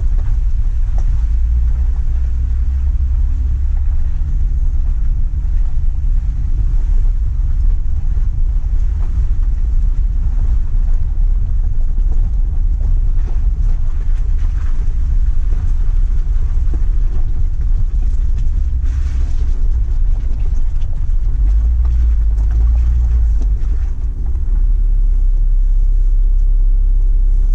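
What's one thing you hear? Tyres crunch and rattle over gravel and stones.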